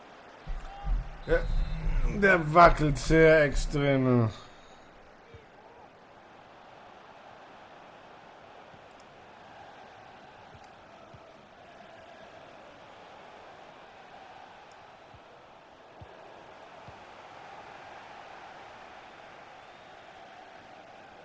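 A stadium crowd murmurs and cheers in a large open space.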